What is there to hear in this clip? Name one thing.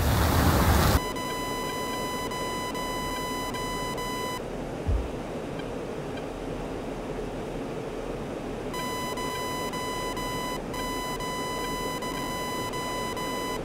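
A jet engine hums steadily, muffled from inside a cockpit.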